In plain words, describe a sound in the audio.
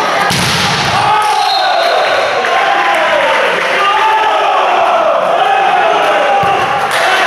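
Players shout and cheer together after a point.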